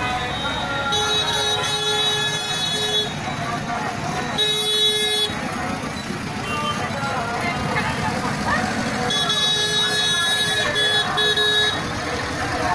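Vehicle horns honk in long blasts.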